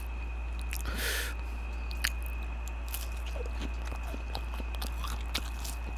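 A young man chews crunchy food close to a microphone.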